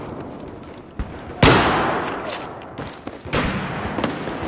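Gunshots ring out in sharp bursts with a short echo.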